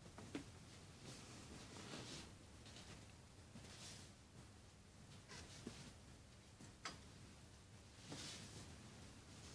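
Fabric rustles as hands move and smooth clothing.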